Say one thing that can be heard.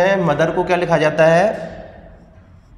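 A man speaks clearly into a close microphone.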